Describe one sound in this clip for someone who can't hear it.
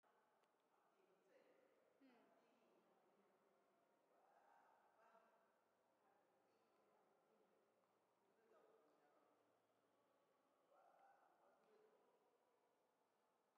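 A man talks softly nearby in an echoing hall.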